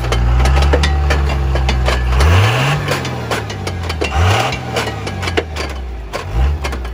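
A truck engine idles and revs up and down.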